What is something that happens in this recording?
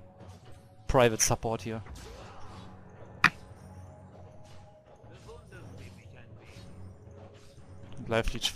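Fantasy combat sounds of magic blasts and strikes go off in short bursts.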